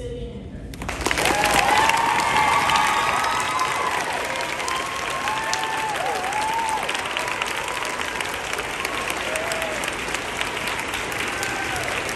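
A crowd cheers with high shouts.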